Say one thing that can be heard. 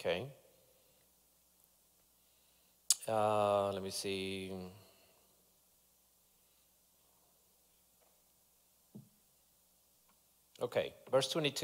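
A man speaks slowly and deliberately into a microphone, in a large room, with long pauses.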